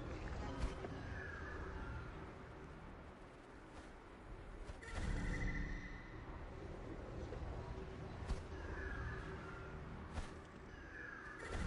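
An eagle gives short, high screeches.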